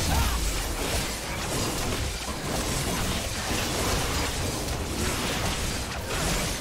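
Magic spells crackle and burst in a fast video game fight.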